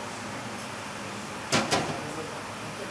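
A metal lid clanks against a pot.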